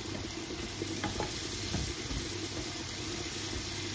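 A wooden spoon scrapes and stirs vegetables in a pan.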